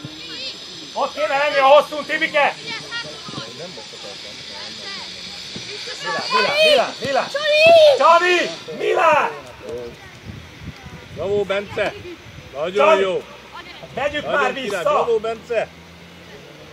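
Children shout to each other loudly across an open outdoor pitch.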